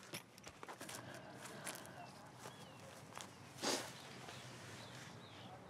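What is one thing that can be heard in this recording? A young woman sobs quietly, close by.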